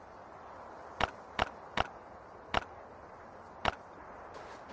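Short clicks tap several times.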